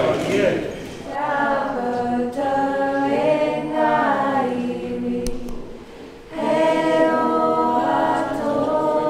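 A group of people sings together in a large echoing hall.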